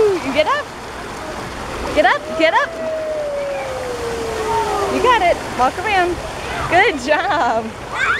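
Water splashes as a small child plunges into a shallow pool.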